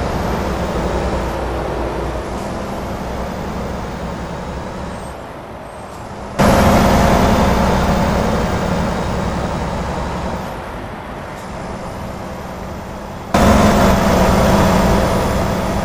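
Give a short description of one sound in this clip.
A heavy truck engine rumbles steadily, growing louder in sudden bursts.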